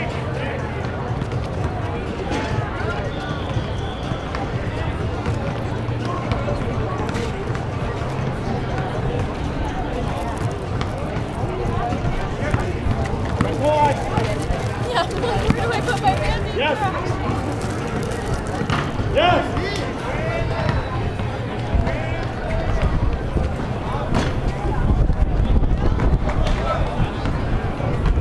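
A crowd of people chatters at a distance.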